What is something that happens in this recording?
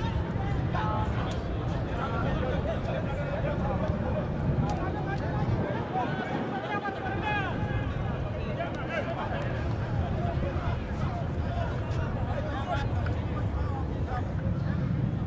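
A small crowd chatters and calls out in an open-air stadium.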